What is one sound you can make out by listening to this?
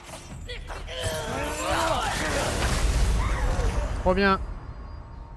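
A large creature roars in pain and falls.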